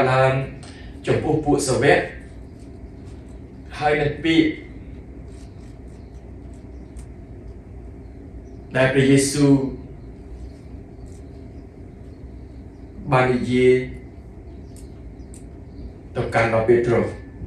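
A middle-aged man speaks calmly into a nearby microphone, in short bursts with pauses.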